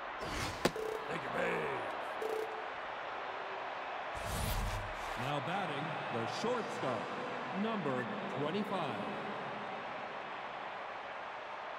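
A large crowd murmurs and cheers steadily in a stadium.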